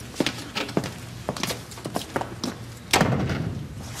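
A wooden door shuts.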